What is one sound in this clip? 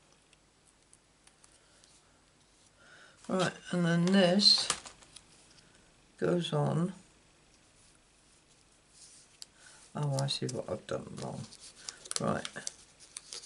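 Paper rustles softly as hands handle and press it.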